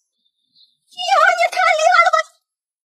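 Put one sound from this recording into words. A young woman exclaims excitedly, close by.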